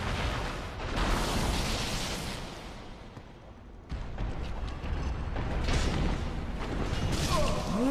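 Swords clash and clang.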